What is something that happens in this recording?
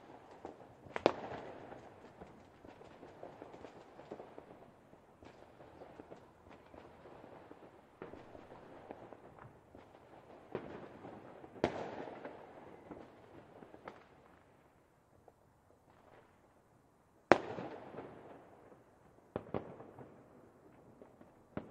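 Fireworks burst with loud booms.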